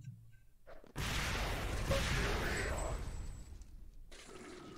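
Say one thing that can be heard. An explosion booms and rumbles, then slowly fades.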